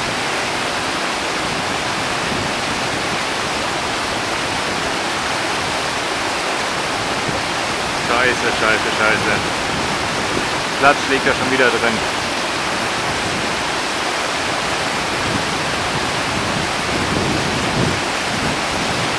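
A fast river rushes loudly over rocks.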